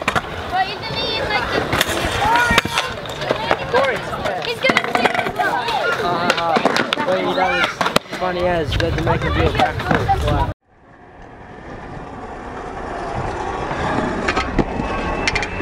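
Scooter wheels roll and rattle on concrete.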